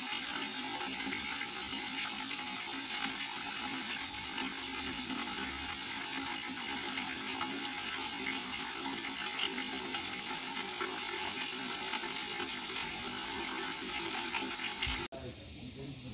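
Water pours from a spout and splashes into a bucket.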